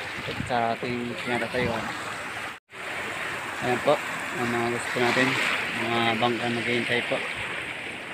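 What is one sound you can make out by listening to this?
A young man speaks close to the microphone.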